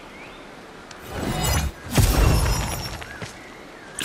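A magical staff flares up with a bright shimmering whoosh.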